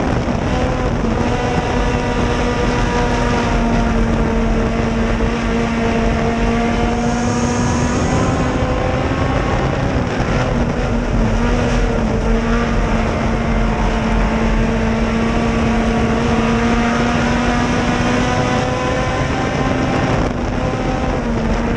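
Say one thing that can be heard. A race car engine roars loudly at high revs, rising and falling as it drives through turns.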